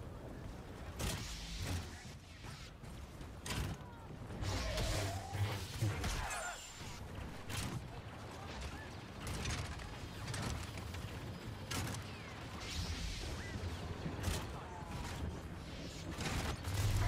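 Laser blasts fire in quick, sharp bursts.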